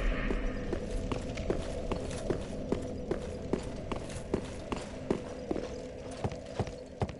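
Footsteps clatter on stone.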